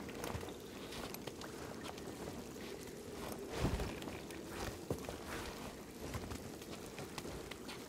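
Hands scrape and knock against wood while climbing.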